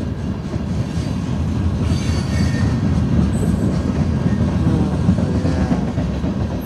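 A freight train rumbles loudly past, close by.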